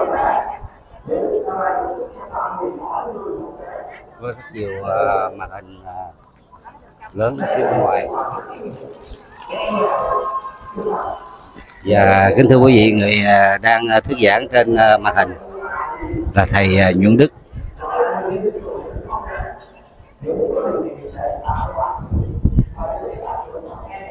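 A man speaks steadily through loudspeakers outdoors.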